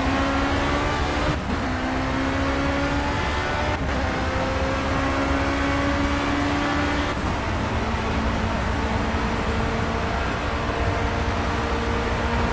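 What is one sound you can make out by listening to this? A racing car engine screams as it accelerates, its pitch rising and dropping sharply with each gear change.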